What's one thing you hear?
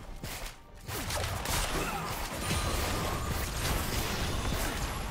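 Video game battle effects crackle, whoosh and clash.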